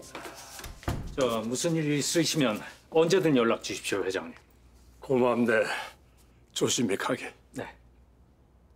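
A middle-aged man speaks with agitation nearby.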